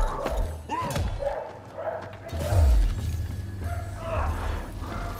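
A weapon swings and whooshes through the air.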